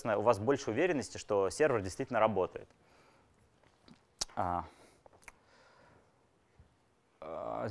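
A man lectures through a microphone, speaking in short bursts with pauses.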